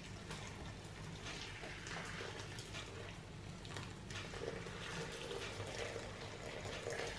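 Liquid pours steadily into a metal pot.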